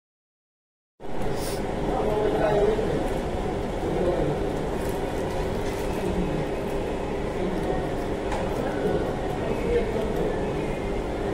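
Young women talk quietly close by.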